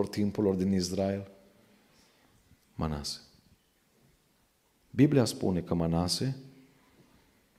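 A man speaks calmly into a microphone in a reverberant room.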